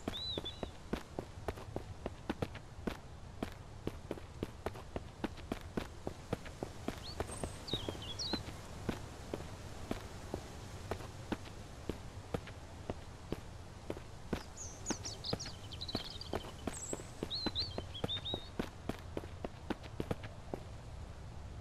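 Footsteps crunch steadily on gravel and asphalt.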